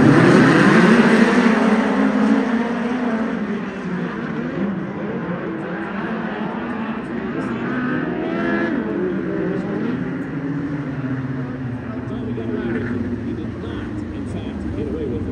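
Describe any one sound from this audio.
Several racing car engines roar loudly, revving and whining as the cars speed past.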